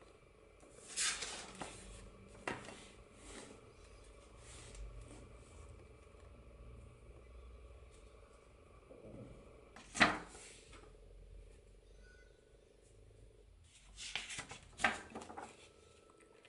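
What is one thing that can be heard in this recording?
Paper pages rustle and flip as a sketchbook is turned.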